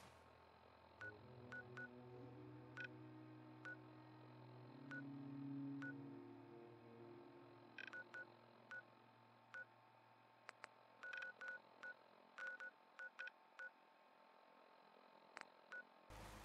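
A small electronic device clicks and beeps in quick, short bursts.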